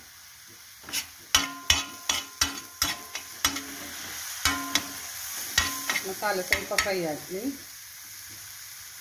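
A spatula scrapes and clicks against a metal pan.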